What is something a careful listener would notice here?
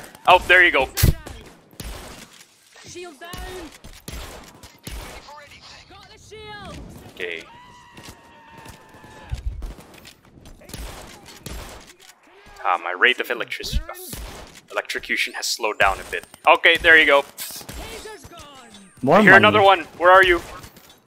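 A shotgun fires in loud, sharp blasts.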